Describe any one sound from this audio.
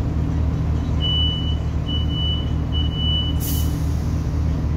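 A beeping chime sounds in a carriage.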